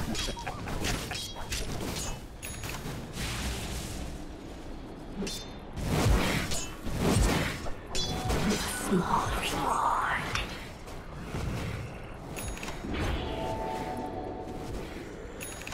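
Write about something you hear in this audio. Magic blasts and weapon strikes clash in a busy fight.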